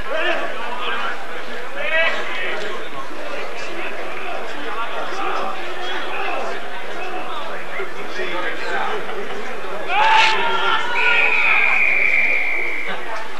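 Adult men shout to each other on an open field at a distance.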